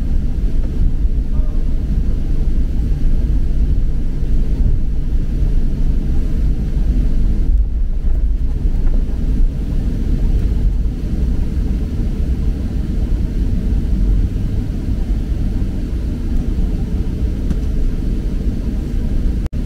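An aircraft rumbles steadily as it rolls along a runway.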